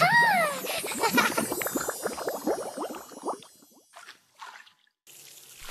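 Soft jelly cubes tumble and squish into a pile.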